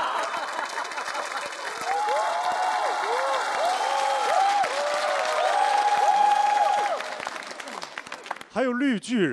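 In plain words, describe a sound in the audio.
An audience laughs and claps in a large hall.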